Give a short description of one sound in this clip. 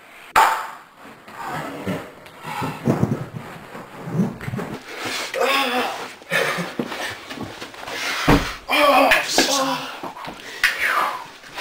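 A body thuds onto a mattress.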